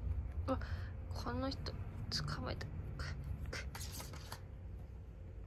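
A soft toy rustles and bumps on a carpet.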